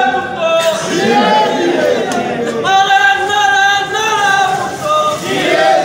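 A crowd of men talk and call out loudly close by.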